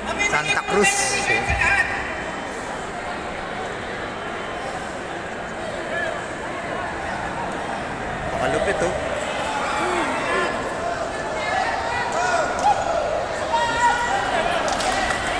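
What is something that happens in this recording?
A crowd chatters in the background of a large echoing hall.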